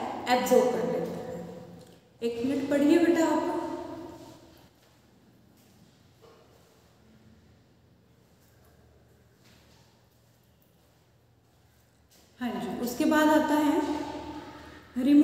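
A young woman speaks calmly and close to the microphone.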